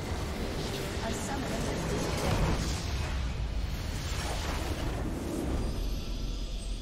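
A structure explodes with a heavy rumbling blast.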